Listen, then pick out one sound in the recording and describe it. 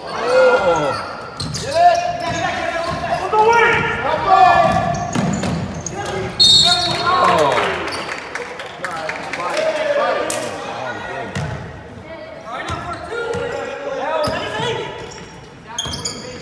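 A crowd of spectators, men and women, shouts and cheers loudly in an echoing hall.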